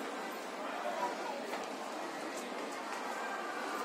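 Stroller wheels rattle as a toddler pushes it.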